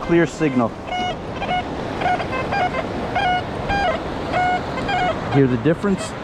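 A metal detector beeps in short repeated tones.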